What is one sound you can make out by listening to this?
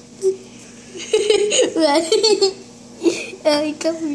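A young girl talks and laughs with animation close by.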